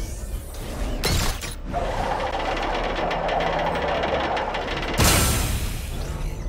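A thruster blasts in a sudden burst.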